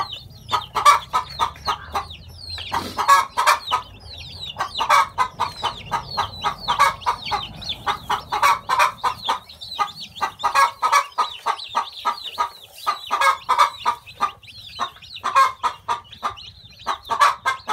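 Chicks peep rapidly and loudly close by.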